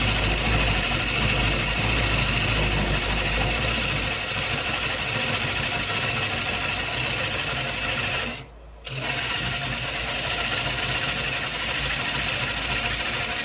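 A wood lathe spins with a steady low hum.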